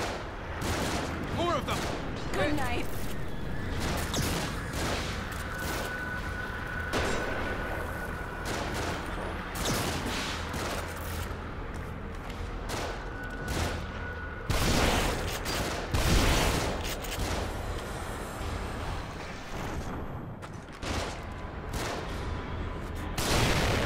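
Gunshots crack and boom repeatedly.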